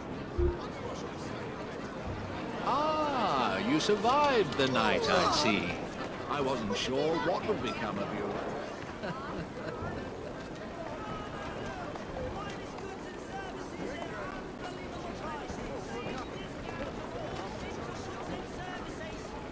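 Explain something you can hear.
Running footsteps patter on cobblestones.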